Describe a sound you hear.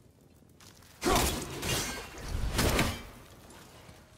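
An axe hacks and tears through a tangle of brittle growth.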